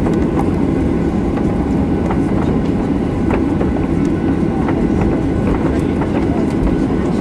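Jet engines rumble steadily inside an aircraft cabin.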